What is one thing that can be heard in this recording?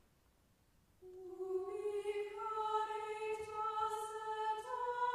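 A choir sings slowly in a large echoing hall.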